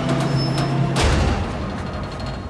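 A heavy ladder drops onto a ledge with a loud thud.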